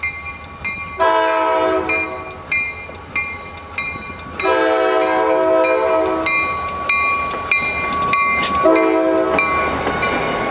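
A diesel locomotive's horn blares loudly in long blasts.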